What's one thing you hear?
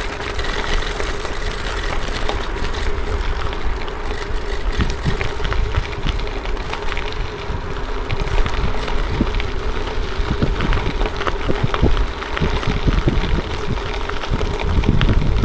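Tyres crunch and rattle over gravel.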